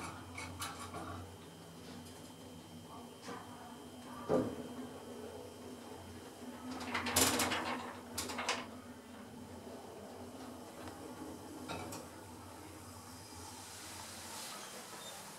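An elevator car hums steadily as it travels.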